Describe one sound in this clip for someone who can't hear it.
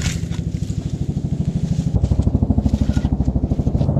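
A concrete block thuds down onto soft soil.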